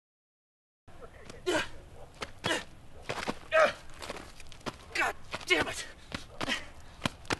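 Shoes scrape and skid across loose gravel.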